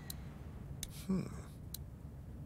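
A man murmurs a short thoughtful hum.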